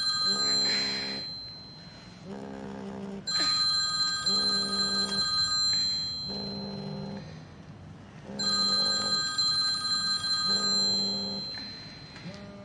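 A mobile phone rings and buzzes on a wooden surface.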